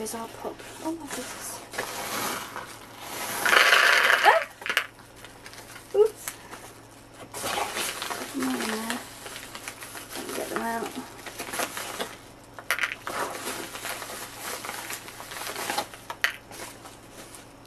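A paper bag rustles and crinkles close by.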